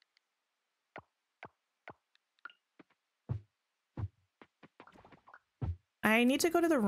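Short soft game pops sound as eggs are picked up.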